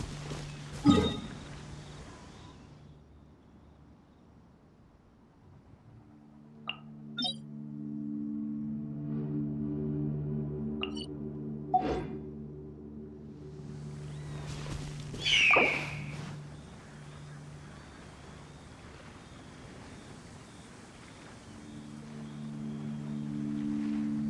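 Calm music plays with soft held notes.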